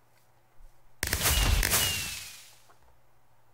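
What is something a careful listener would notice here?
A loud explosion booms and fades.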